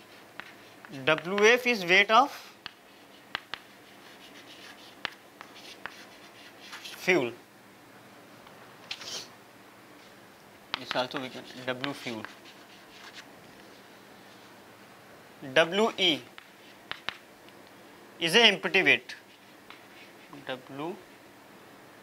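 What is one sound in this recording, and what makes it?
A young man speaks calmly in short phrases, as if lecturing.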